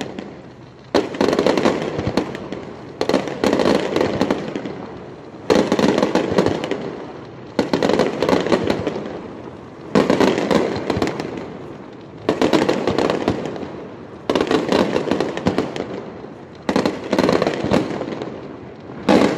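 Fireworks crackle and fizzle overhead.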